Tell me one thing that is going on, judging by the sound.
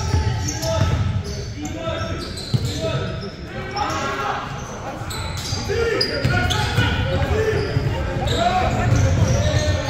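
A basketball bounces on a wooden floor with dull thuds.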